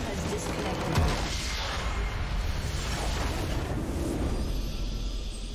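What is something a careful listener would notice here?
A huge game explosion booms and rumbles.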